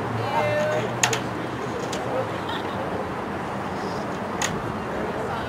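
Hockey sticks crack sharply against a ball.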